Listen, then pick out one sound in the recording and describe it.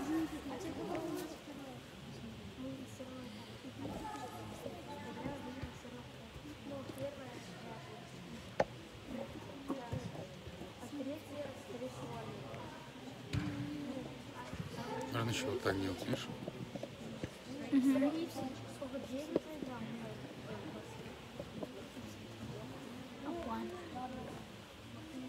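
Children talk and call out in a large echoing hall.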